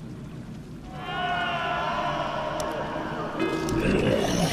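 A shimmering magical tone rings out as a building starts to upgrade.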